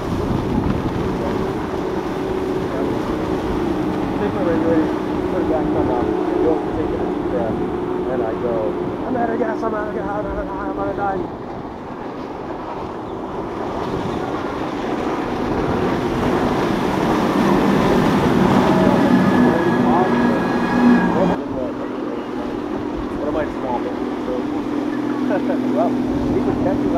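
Water rushes and splashes against a speeding boat's hull.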